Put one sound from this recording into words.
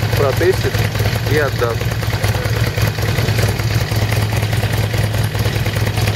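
A motorcycle engine idles with a steady low rumble.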